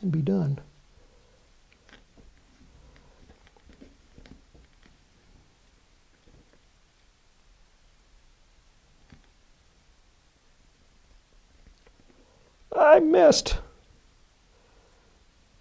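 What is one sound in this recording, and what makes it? Soft tape crinkles and rustles between fingers.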